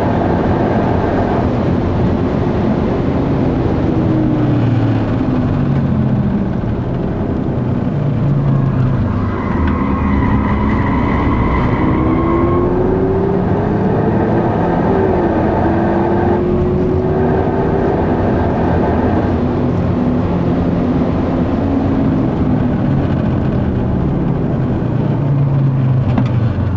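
A car engine roars loudly from inside the cabin, revving up and down as the car shifts gears.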